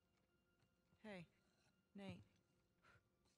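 A young woman speaks softly and anxiously, close by.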